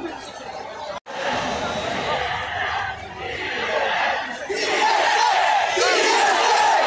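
A huge stadium crowd cheers and roars in a wide open space.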